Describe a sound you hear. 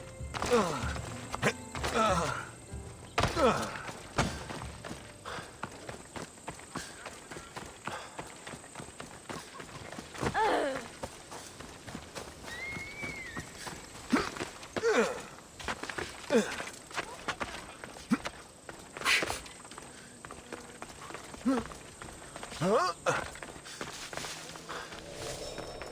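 Footsteps run over dirt and rock.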